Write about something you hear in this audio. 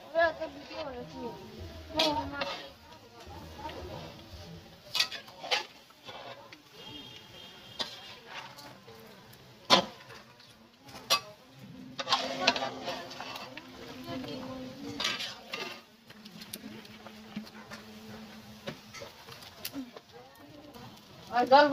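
A metal spatula scrapes and clanks against a pan.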